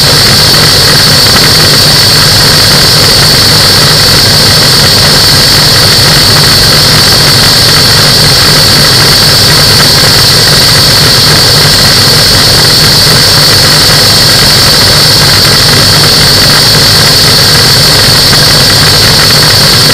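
A small aircraft engine drones loudly and steadily close by.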